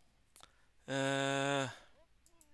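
A retro video game menu plays a bright rising chime.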